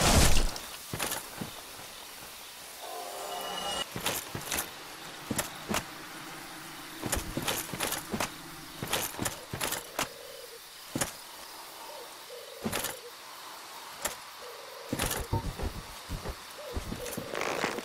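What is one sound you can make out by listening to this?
Armoured footsteps crunch on grass and earth.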